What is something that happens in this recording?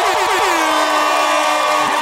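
A young man shouts with excitement.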